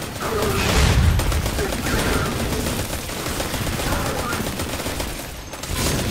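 Gunfire bursts out in loud, rapid shots.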